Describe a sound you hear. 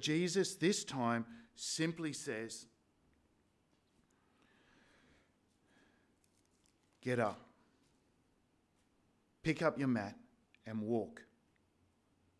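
An elderly man speaks calmly into a microphone, reading aloud with pauses.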